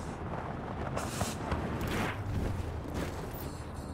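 A body skids and scrapes across the ground.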